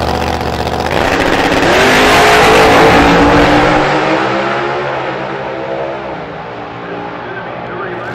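A supercharged V8 drag car launches at full throttle and roars away down the strip, fading into the distance.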